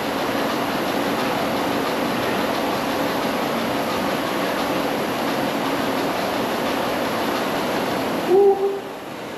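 A steady whirring hum of an exercise bike runs loudly.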